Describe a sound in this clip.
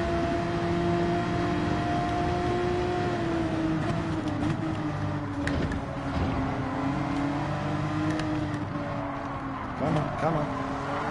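A racing car engine roars steadily, its pitch dropping as it slows for a bend.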